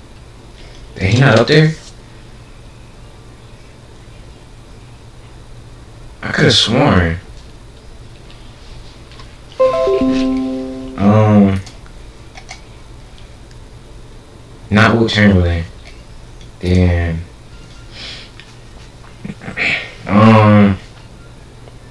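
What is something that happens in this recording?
A young man speaks in short bursts close to a microphone, with pauses between.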